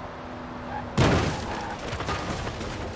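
A car crashes into a roadside sign with a loud bang.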